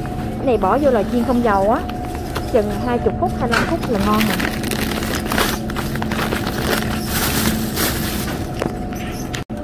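A plastic bag crinkles as it is handled up close.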